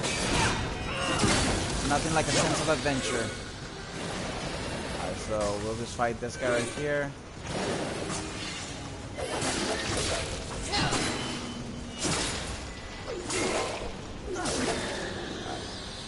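Blades swing and clash in a fight.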